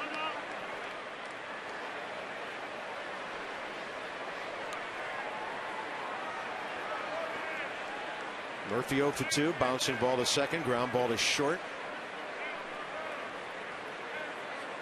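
A large stadium crowd murmurs outdoors.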